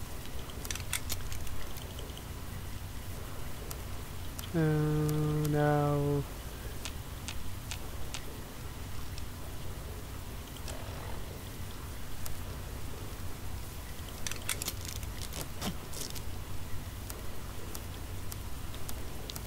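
Soft clicks tick as a game menu scrolls.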